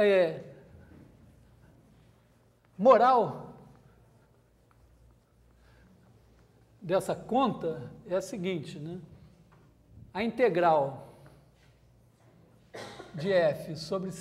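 A man lectures in a calm voice, speaking in short bursts.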